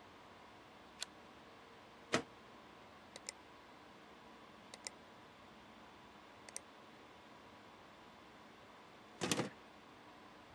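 Short clicks and clunks sound as a hard drive is slid in and out of a computer case.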